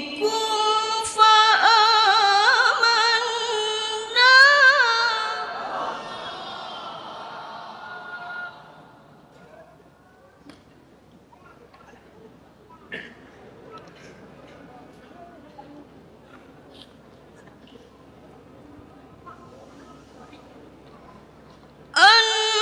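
A young woman sings a long, melodic chant into a microphone, heard through loudspeakers in an echoing hall.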